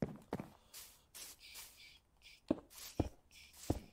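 Stone blocks are placed with short dull knocks.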